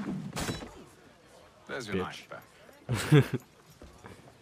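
A man speaks firmly and loudly nearby.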